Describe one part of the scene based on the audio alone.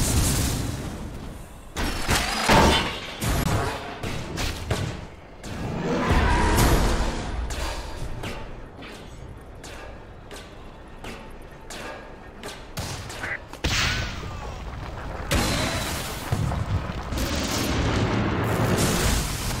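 Fantasy battle sounds of spells bursting and weapons clashing come in quick bursts.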